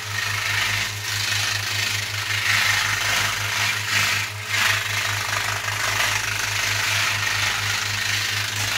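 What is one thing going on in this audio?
A power sander grinds loudly with a steady whirring hum.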